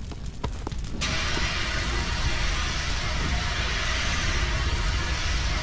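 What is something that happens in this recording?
A fire extinguisher sprays with a loud steady hiss.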